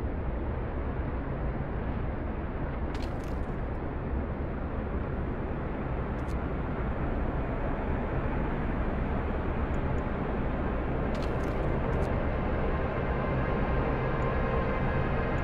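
A strong wind roars steadily.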